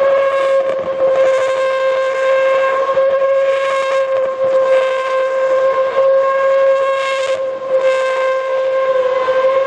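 Tyres squeal and screech on the tarmac.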